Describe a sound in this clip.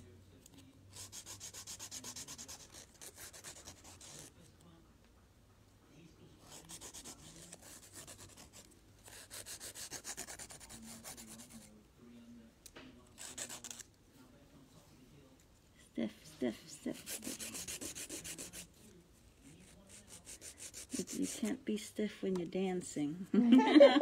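A nail file scrapes back and forth in quick rhythmic strokes.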